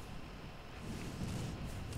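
A game's magic effects whoosh and crackle.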